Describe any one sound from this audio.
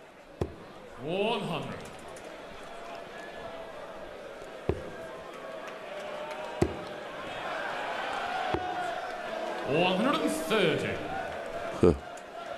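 A man calls out loudly through a microphone.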